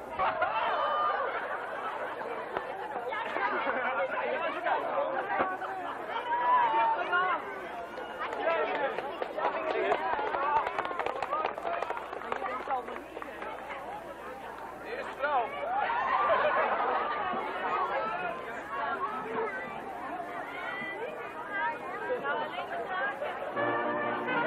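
Children shout and laugh excitedly nearby.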